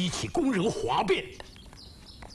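A man speaks sternly and close by.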